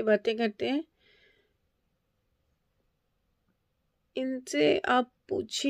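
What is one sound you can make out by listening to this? A middle-aged woman speaks calmly and close up, with pauses.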